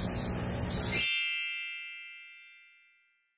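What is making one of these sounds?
A chime rings out and fades away.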